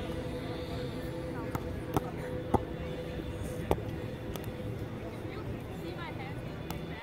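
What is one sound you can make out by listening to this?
Beachgoers chatter in the distance outdoors.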